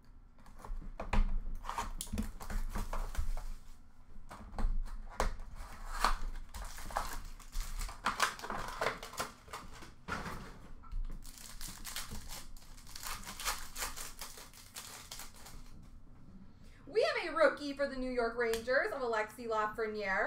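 Plastic card packs rustle and crinkle in hands.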